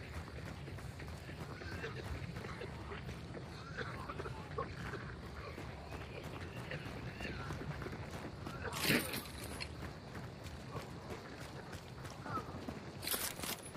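Footsteps crunch steadily over gravel and wooden boards.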